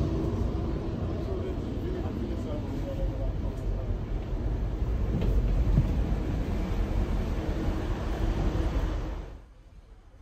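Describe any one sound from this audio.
A commuter train rumbles along the rails, heard from inside a passenger coach.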